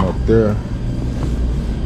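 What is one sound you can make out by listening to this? A metal dryer door swings open with a clunk.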